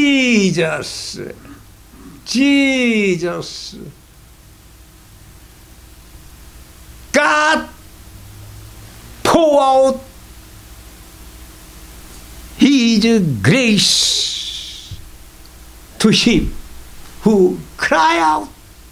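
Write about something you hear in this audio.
A man speaks passionately into a microphone in loud bursts, with long pauses between them.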